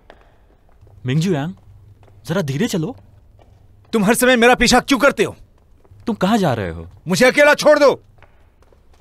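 Two men talk.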